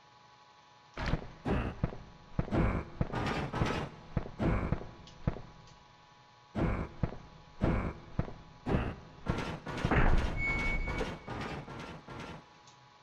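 Footsteps thud on rough ground at a steady walking pace.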